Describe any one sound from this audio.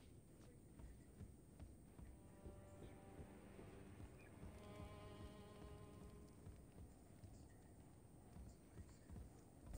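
Heavy footsteps clank across a wooden floor.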